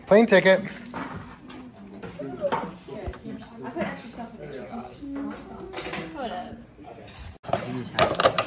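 Young girls talk and laugh close by.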